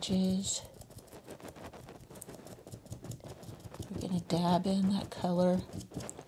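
A brush dabs softly against a canvas.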